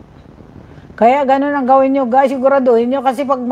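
An older woman sings close to a microphone.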